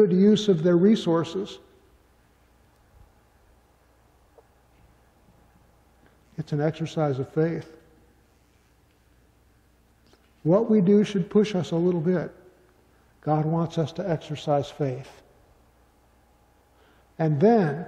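A middle-aged man speaks calmly into a microphone, with pauses.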